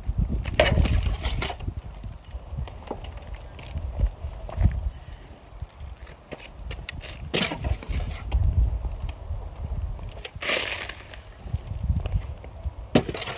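Footsteps shuffle on paving stones outdoors.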